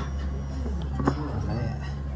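A metal spoon scrapes against a plate.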